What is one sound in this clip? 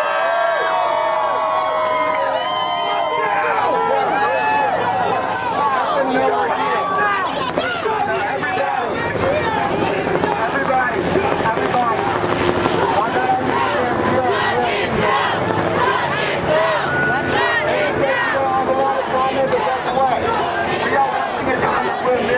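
A large crowd of men and women shouts and cheers loudly outdoors.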